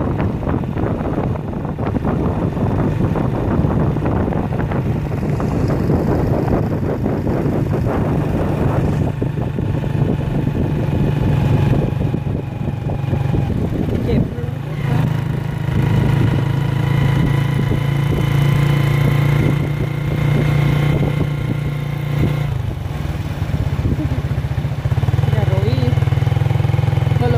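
A motorbike engine hums steadily as it rides along.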